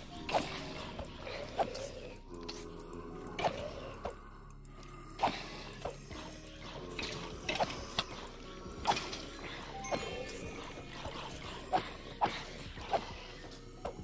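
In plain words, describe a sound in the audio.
A sword strikes a bony creature with quick, sharp hits.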